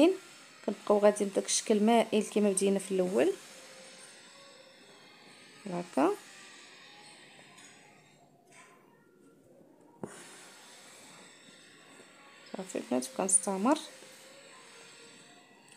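Thread is pulled softly through fabric.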